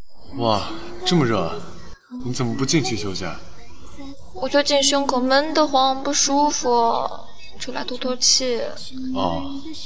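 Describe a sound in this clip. A young woman speaks softly and wearily close by.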